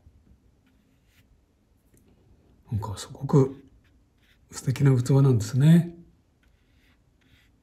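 A paintbrush softly brushes across paper.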